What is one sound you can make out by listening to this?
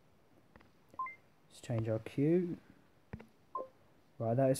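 A short electronic chime sounds.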